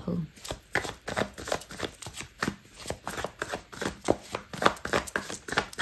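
Cards rustle and flick as a deck is shuffled by hand close up.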